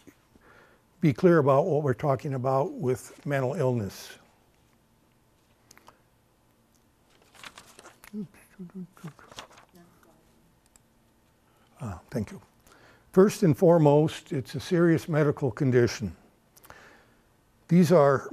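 A man speaks calmly into a microphone, with pauses, in a room with some echo.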